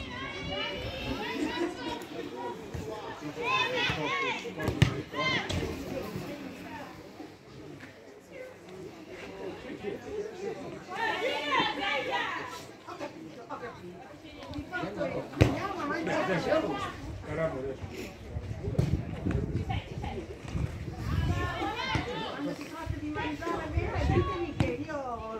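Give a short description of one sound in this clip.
Young women players shout to each other across an outdoor pitch.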